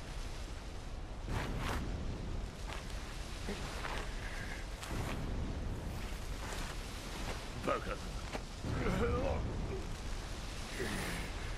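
Lava rumbles low and steadily.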